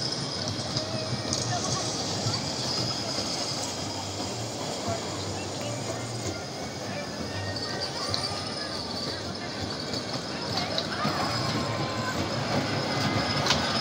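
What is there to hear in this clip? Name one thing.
A small ride-on train rumbles along a narrow steel track.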